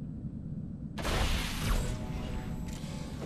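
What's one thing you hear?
A plasma weapon fires with a loud crackling hiss.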